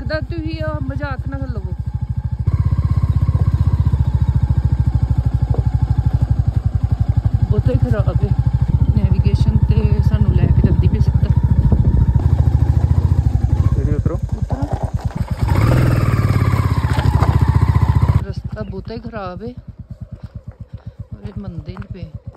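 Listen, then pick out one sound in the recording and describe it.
A motorcycle engine thumps with a steady, rapid beat.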